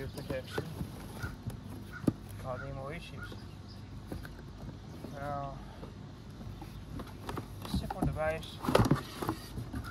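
Cardboard rustles and crinkles as a box is handled.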